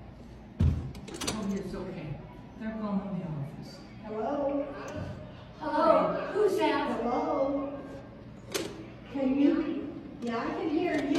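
An older woman talks on a phone with rising frustration.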